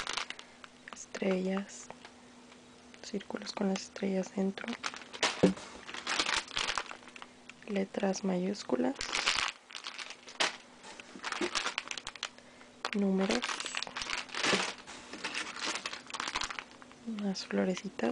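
A plastic bag crinkles and rustles as a hand handles it.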